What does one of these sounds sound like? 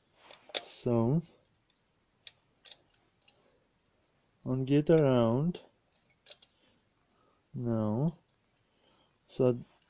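Fingers handle a thin wire on a metal lamp fitting with faint clicks and scrapes.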